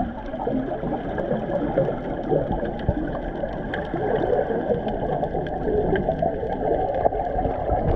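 A swimmer kicks and splashes underwater.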